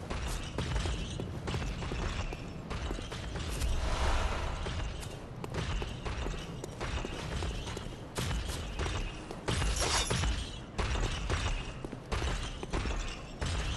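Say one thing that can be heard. Footsteps thud on stone at a steady pace.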